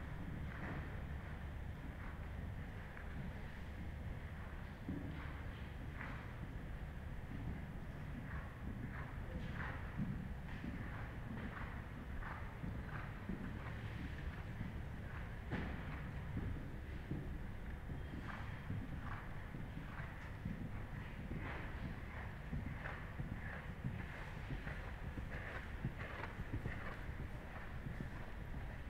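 Hooves thud softly and rhythmically on sand as a horse trots.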